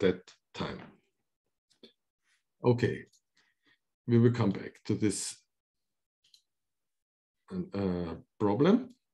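An elderly man speaks calmly into a microphone in short phrases with pauses.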